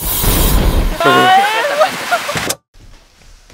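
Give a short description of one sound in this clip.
A young man laughs and shouts.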